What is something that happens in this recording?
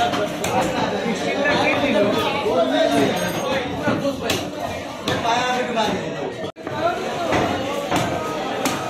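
A knife chops through meat and bone on a wooden block with sharp thuds.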